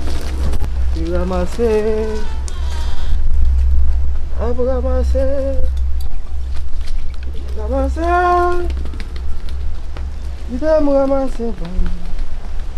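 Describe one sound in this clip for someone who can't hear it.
Goats bleat loudly close by.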